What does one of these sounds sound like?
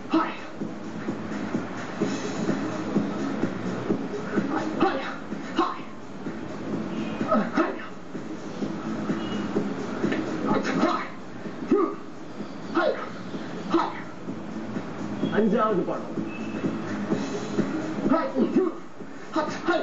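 A wooden staff whooshes as it is swung fast through the air.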